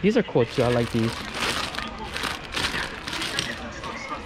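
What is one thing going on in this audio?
Plastic packaging crinkles as a hand handles it.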